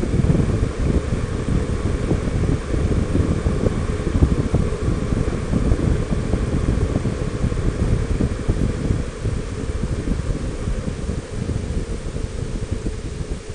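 Wind buffets a microphone loudly and steadily.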